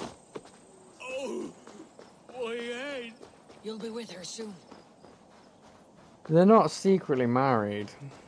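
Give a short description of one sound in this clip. A man groans and speaks in pain close by.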